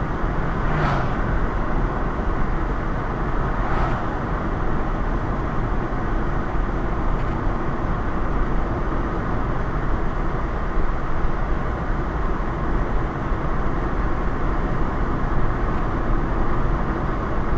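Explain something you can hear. Wind rushes steadily past a moving car.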